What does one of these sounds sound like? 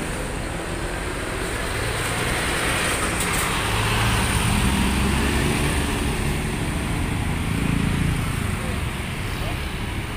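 A bus drives off down the road.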